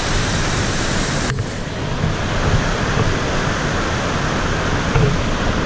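A mountain stream rushes loudly over rocks.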